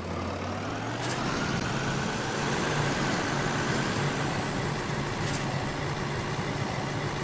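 A truck engine rumbles steadily as it drives slowly over rough ground.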